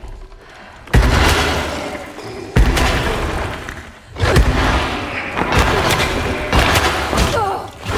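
Blows thud during a violent struggle.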